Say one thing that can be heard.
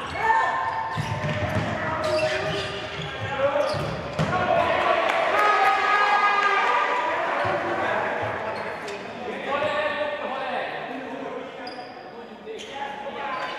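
A ball thuds as players kick it in an echoing indoor hall.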